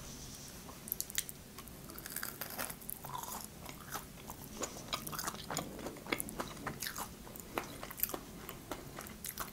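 A young woman crunches loudly on fried food close to a microphone.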